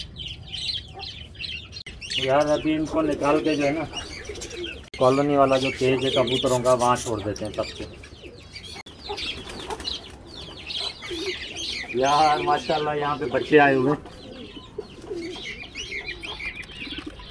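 Small birds chirp and twitter nearby.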